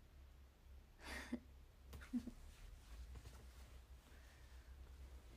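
A young woman laughs briefly, close by.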